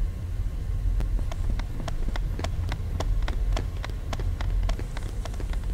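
Quick footsteps patter up stone stairs.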